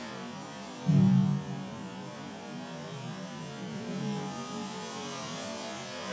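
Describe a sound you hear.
A wooden sword swishes through the air.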